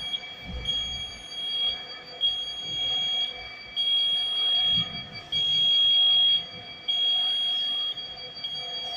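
A motorized shelving unit rolls slowly along floor rails with a low hum.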